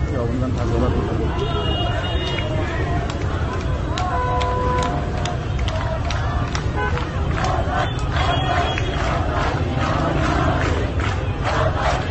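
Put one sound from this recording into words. A large crowd shouts and chants outdoors.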